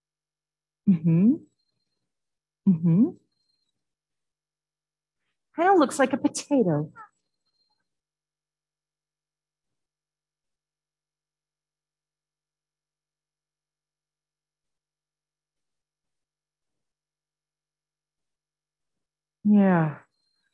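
An adult speaks in short, separate phrases through a microphone, heard over an online call.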